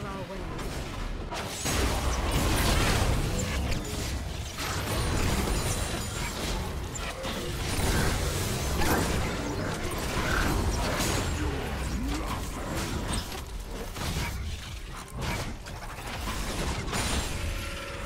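Game spell effects whoosh and crackle in a fierce battle.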